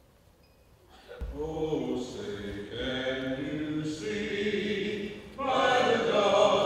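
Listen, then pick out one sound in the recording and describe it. A quartet of men sings in harmony close to a microphone, in a large hall.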